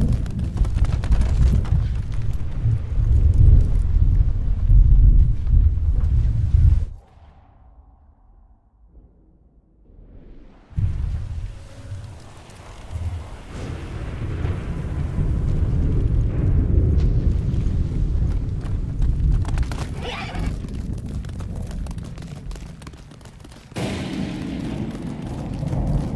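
A horse's hooves clop steadily on wooden planks.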